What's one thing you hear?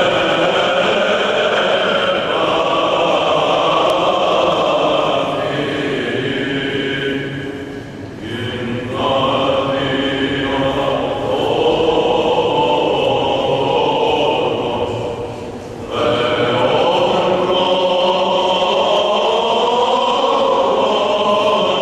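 A choir of men chants together in a resonant, echoing hall.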